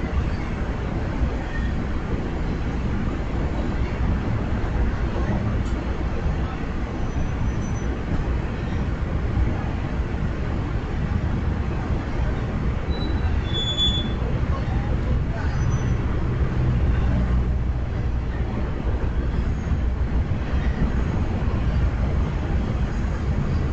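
A diesel locomotive idles with a steady low rumble, heard outdoors.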